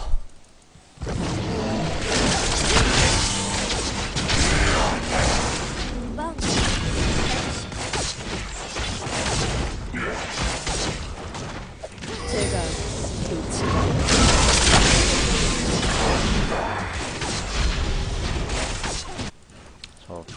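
Video game combat effects clash and whoosh loudly.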